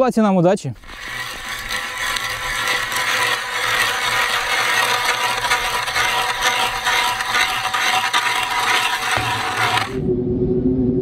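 A hand ice auger grinds steadily into ice.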